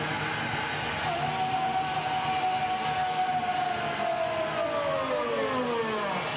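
A loud rock band plays live in an echoing hall.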